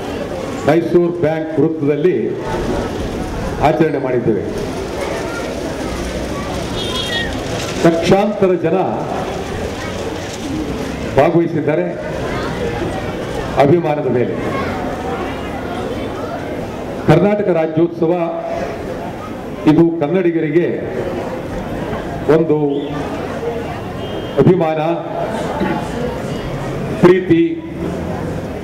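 An older man speaks forcefully into a microphone through loudspeakers, in bursts with pauses.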